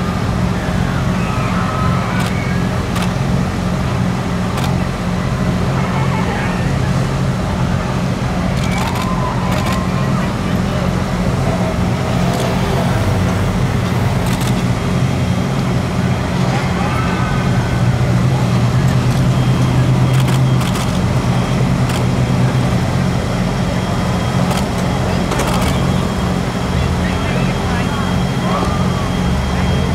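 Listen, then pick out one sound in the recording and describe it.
Men talk casually nearby, outdoors.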